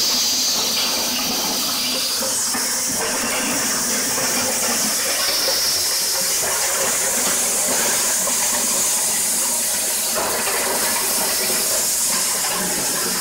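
Corn kernels rattle and clatter out of a corn sheller.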